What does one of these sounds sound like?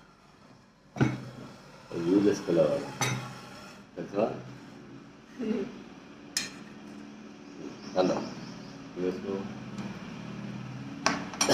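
A spoon clinks against a steel bowl.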